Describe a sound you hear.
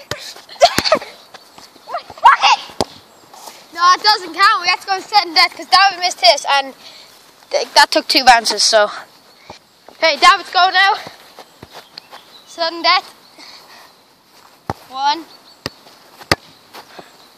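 A football thuds as a boy kicks it.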